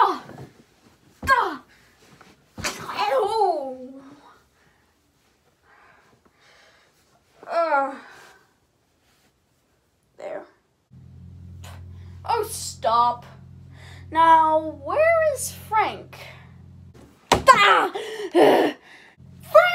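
A boy talks with animation, close by.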